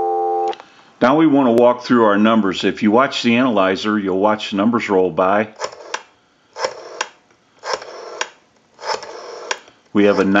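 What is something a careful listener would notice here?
A rotary telephone dial whirs and clicks as it turns back.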